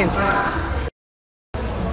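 A young woman speaks close up, sounding upset.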